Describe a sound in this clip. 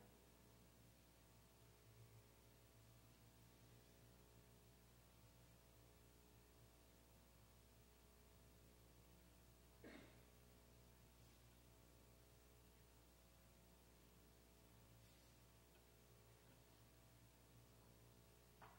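A piano plays softly in a large, reverberant hall.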